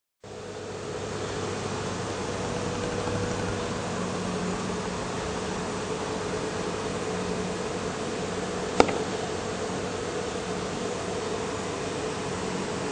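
A piano plays soft, held notes.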